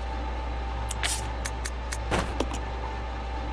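Short electronic menu clicks sound in quick succession.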